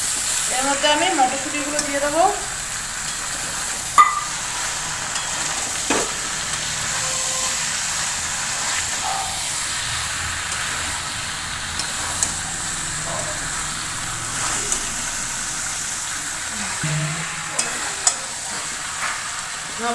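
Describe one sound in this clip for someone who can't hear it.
A metal spatula scrapes and knocks against a metal wok while stirring potatoes.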